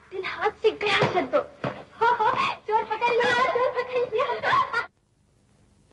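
Women scream and shout close by during a struggle.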